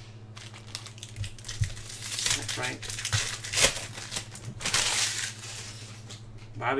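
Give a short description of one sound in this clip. A plastic wrapper crinkles as it is torn open.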